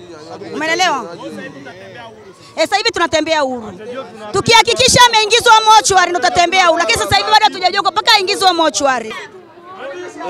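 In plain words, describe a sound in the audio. A middle-aged woman speaks loudly and with animation into a microphone close by.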